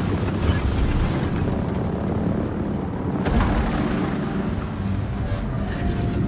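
Deep booming of naval gunfire rumbles on and on.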